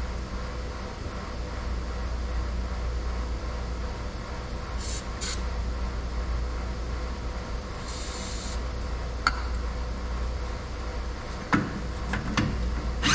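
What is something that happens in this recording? Metal tools clink and knock against a small engine.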